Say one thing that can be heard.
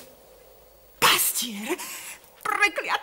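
A young woman speaks with emotion nearby.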